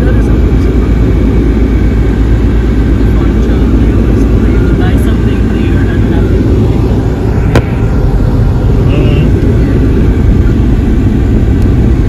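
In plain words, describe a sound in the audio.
A car's engine rumbles steadily from inside the vehicle.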